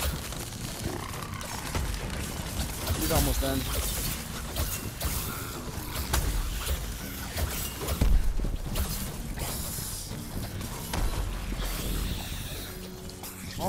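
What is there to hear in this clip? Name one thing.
Weapons strike and thud repeatedly.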